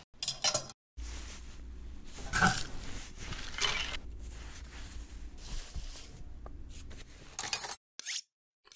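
A plastic packet crinkles and rustles.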